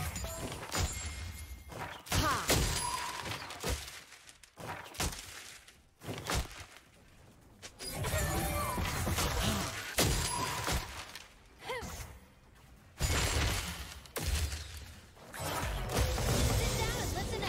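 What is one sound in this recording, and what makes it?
Game spell effects whoosh and crackle during a battle.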